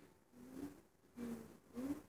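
A boy claps his hands.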